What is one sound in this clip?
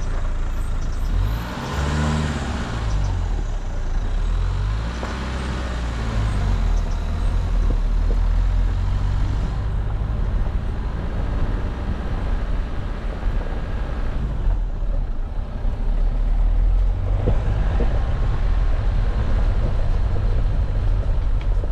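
Tyres crunch and rumble over a rough dirt track.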